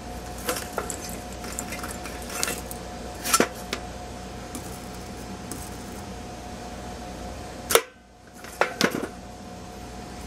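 Wire brushes clink and rattle in a metal box.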